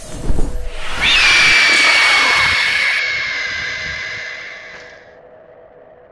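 A young woman screams loudly and shrilly.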